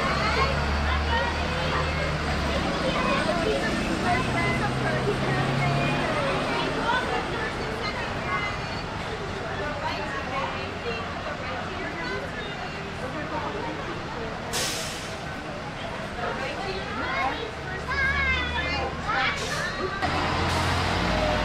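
Young children chatter and call out excitedly close by.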